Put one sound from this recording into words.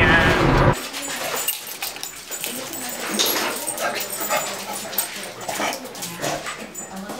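Dog claws click and patter on a hard tile floor.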